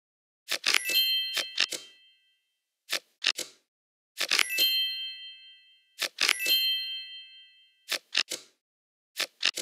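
Playing cards click and snap as they are moved.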